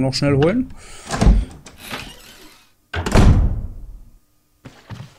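A heavy door creaks open and thuds.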